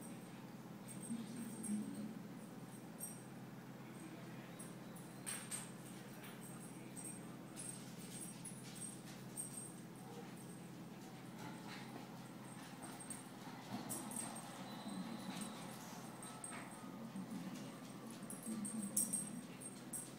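Paws patter and claws click on a wooden floor as small dogs play.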